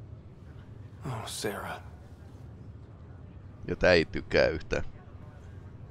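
A man speaks briefly in a low voice.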